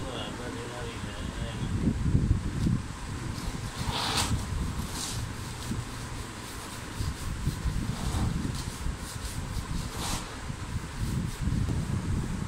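A hand pats and rubs a hollow plastic tank with dull thumps.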